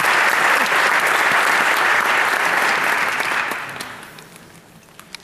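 An audience claps and cheers loudly, then the applause fades away.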